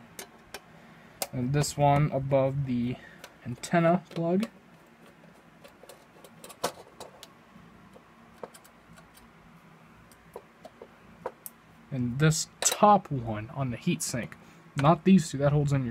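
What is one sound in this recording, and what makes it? A small screwdriver scrapes and clicks against metal screws.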